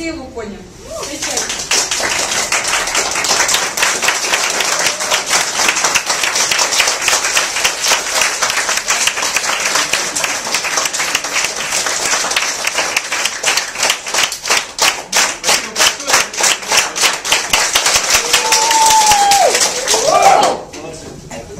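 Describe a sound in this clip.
A crowd applauds loudly in a room.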